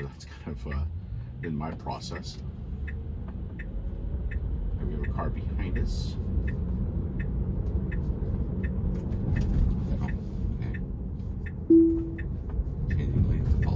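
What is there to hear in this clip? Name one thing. Tyres rumble steadily on the road as a car drives.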